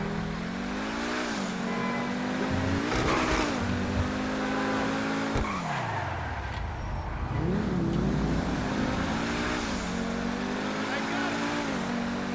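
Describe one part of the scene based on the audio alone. A sports car engine roars and revs up and down through the gears.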